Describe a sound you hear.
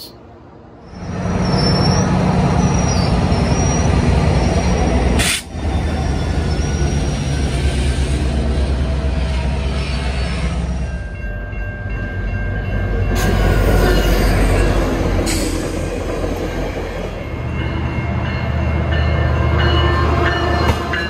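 A diesel locomotive rumbles loudly as a train passes close by.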